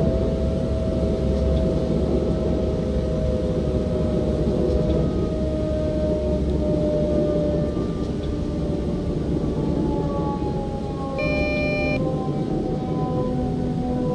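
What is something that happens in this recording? An electric train motor whines steadily, slowly falling in pitch.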